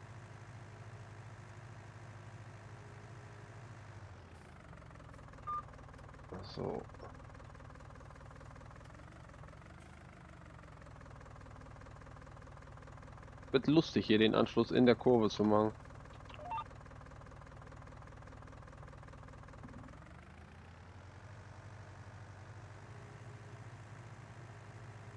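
A small tractor engine hums steadily as it drives along.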